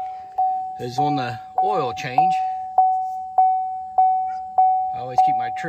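A car's warning chime beeps steadily over and over.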